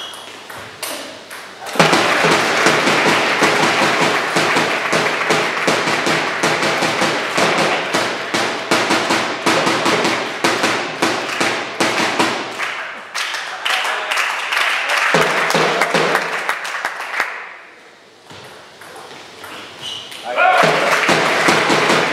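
A ping-pong ball clicks back and forth off paddles and a table.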